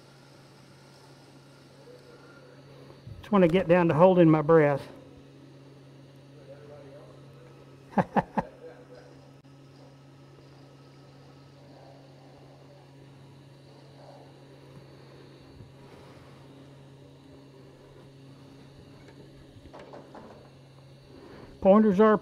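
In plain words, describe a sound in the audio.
A wood lathe motor hums steadily.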